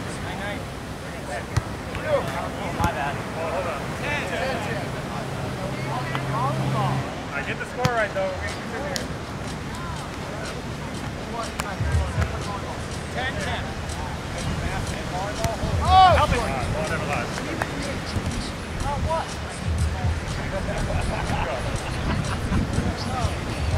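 Wind gusts across the open beach.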